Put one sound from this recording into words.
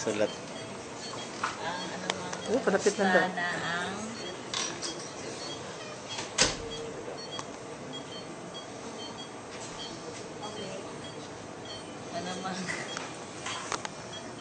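A patient monitor beeps softly and steadily.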